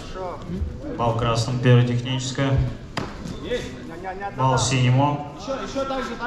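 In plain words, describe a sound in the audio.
A man shouts commands loudly in a large echoing hall.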